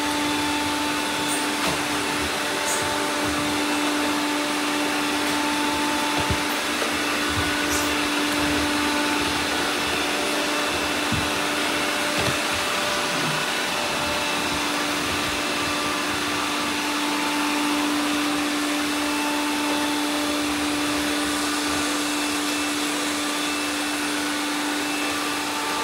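Robot vacuums bump softly against each other.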